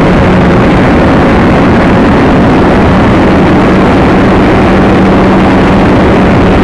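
Wind rushes loudly and roughly past a model glider in flight.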